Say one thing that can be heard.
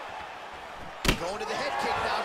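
A hard kick lands with a loud thud.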